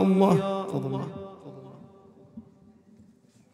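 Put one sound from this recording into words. A man speaks into a microphone, echoing through loudspeakers.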